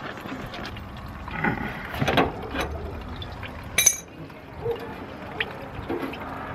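Fluid trickles and splashes into a plastic bucket.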